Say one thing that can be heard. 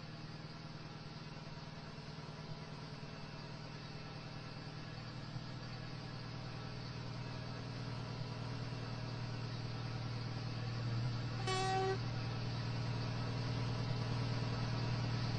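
A diesel train engine rumbles, growing louder as the train approaches.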